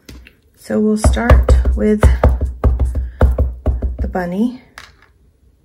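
A rubber stamp taps repeatedly against an ink pad.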